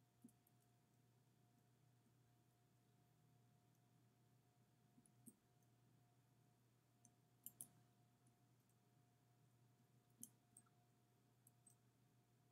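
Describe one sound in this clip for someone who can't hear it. Short electronic game blips sound now and then.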